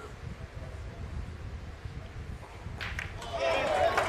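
A metal boule thuds onto the ground and rolls to a stop.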